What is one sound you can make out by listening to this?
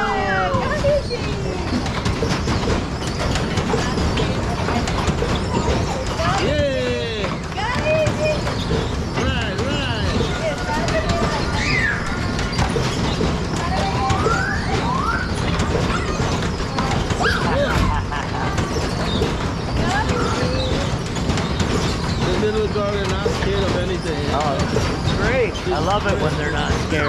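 Young children shout and chatter nearby.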